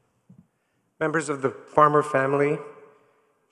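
A man speaks calmly through a microphone in a large echoing hall.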